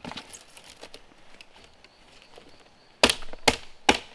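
Bamboo splits with a cracking sound.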